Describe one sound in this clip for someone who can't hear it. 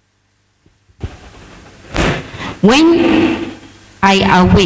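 A woman speaks through a microphone in an echoing hall.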